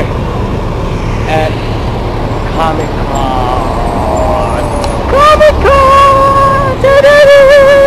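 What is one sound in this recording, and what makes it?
A city bus engine rumbles as the bus passes close by.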